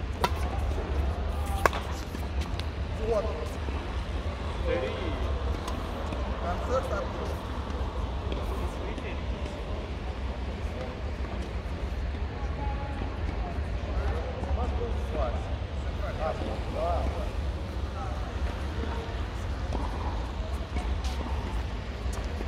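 A shuttlecock is struck with a racket with sharp pings.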